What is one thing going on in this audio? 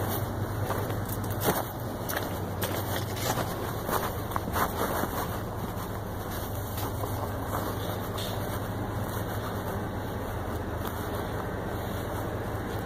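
Fabric rustles and scrapes close against the microphone.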